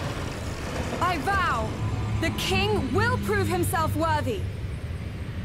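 A young woman speaks loudly and with determination.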